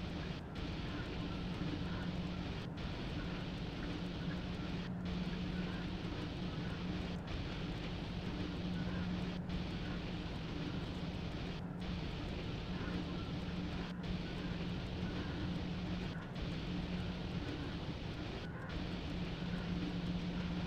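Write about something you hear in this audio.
Train wheels rumble and clack over the rails.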